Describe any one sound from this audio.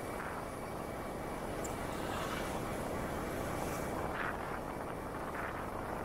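A bus passes close by with a low engine rumble.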